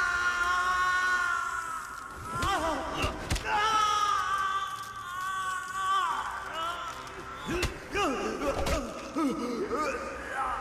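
Blows thud as two men grapple.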